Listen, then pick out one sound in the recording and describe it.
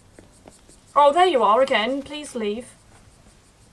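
A young woman speaks briefly and with animation, close to a microphone.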